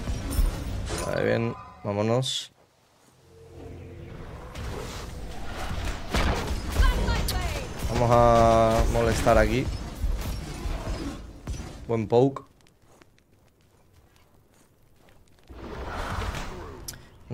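Game sound effects of spells and blasts burst and crackle.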